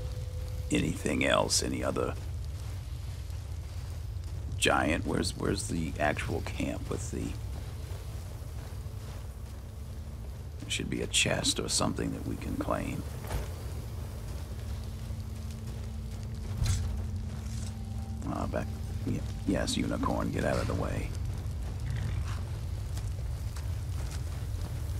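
Footsteps crunch quickly over snow and gravel.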